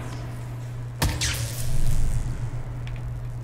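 An electrified blade crackles and buzzes as it strikes.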